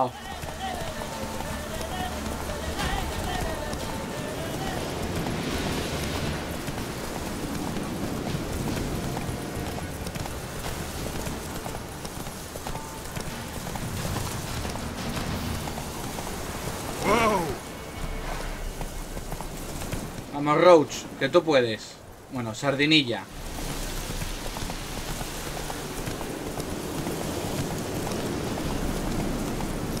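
A horse gallops along a path, its hooves thudding steadily.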